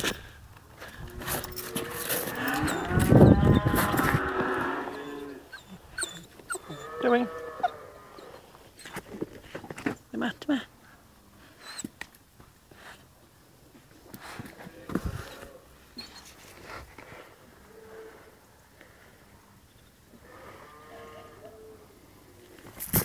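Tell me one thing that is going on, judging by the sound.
A puppy whines and yips playfully.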